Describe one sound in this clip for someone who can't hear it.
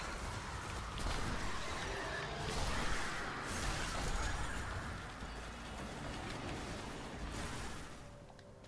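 Blasts boom and roar.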